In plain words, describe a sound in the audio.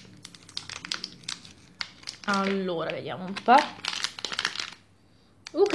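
A plastic candy wrapper crinkles in a hand.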